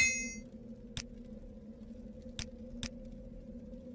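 Soft clicks tick.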